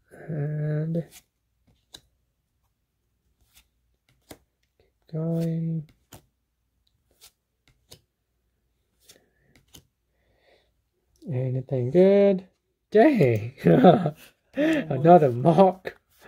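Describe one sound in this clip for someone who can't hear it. Trading cards slide and flick softly against each other.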